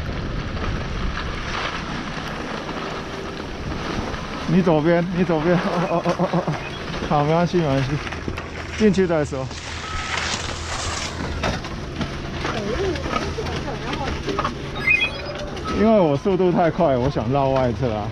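Skis scrape and hiss over snow.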